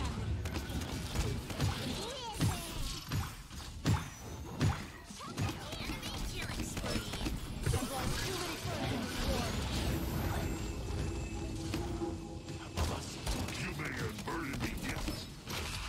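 A game's energy gun fires in rapid zapping bursts.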